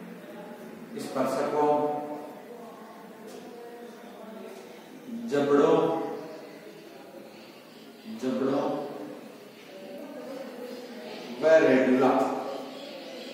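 A man speaks in a lecturing manner, in bursts with pauses, in a bare echoing room.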